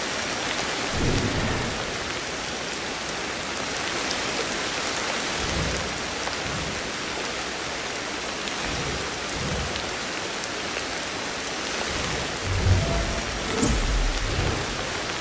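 Dull thumps sound as a person grips and pulls up on branches.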